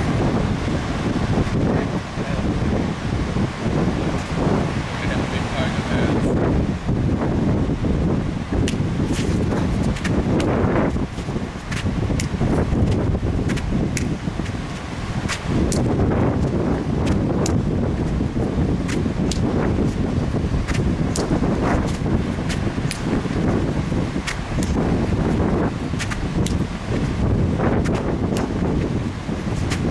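Wind buffets the microphone outdoors in a steady roar.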